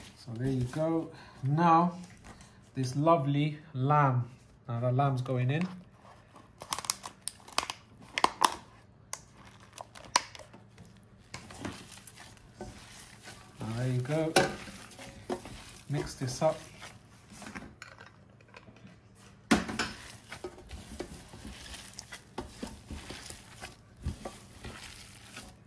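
Gloved hands squish and knead a moist mixture.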